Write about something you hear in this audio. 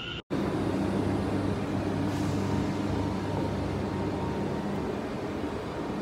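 A locomotive engine hums as it passes close by.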